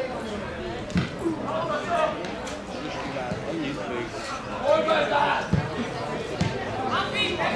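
A football thumps off a boot.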